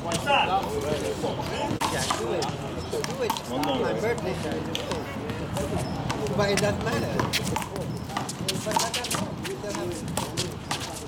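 Sneakers shuffle and scuff on pavement.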